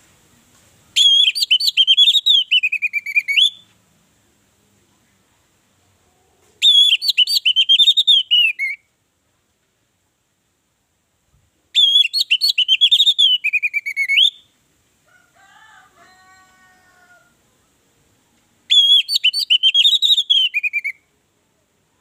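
An orange-headed thrush sings short bursts of loud, rich whistled phrases.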